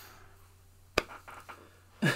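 A hand pats a man's shoulder.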